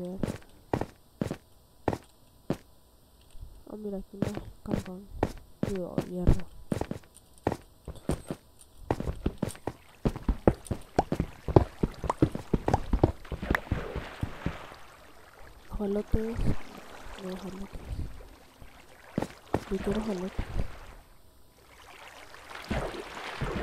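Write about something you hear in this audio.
A pickaxe knocks rapidly against stone.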